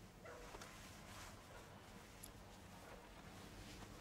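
Fabric rustles as clothes are pulled from a trunk.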